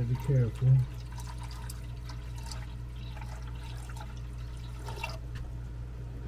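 Water pours in a thin stream and splashes into a small basin.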